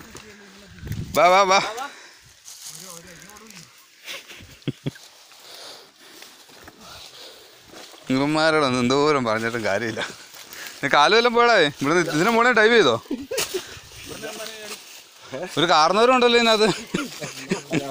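A man talks loudly and with animation close by, outdoors.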